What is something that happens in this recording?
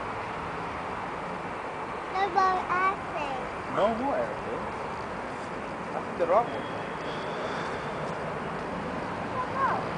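A jet plane roars far off as it climbs.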